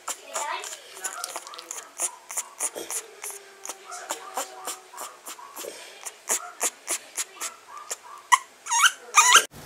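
A young puppy whimpers and squeals close by.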